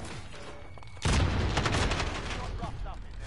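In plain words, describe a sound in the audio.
A rifle fires a rapid burst of loud shots.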